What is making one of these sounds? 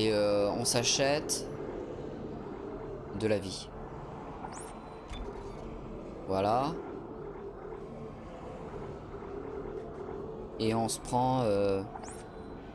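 Short electronic chimes sound.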